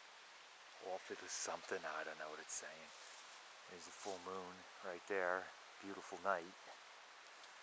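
A man talks in a low voice close by.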